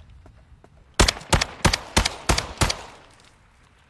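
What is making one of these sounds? Rapid gunshots fire in a burst.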